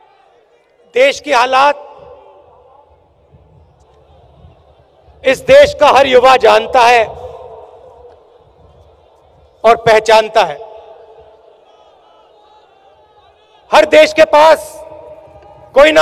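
A man speaks forcefully into a microphone over loudspeakers, echoing outdoors.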